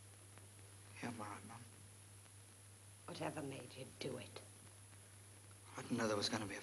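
A young man speaks softly and earnestly.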